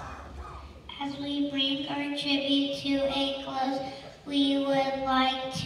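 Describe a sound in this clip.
A choir of young children sings together in an echoing hall.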